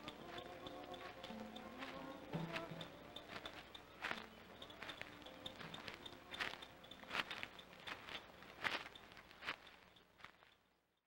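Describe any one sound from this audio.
Tall dry grass rustles as a woman pushes through it.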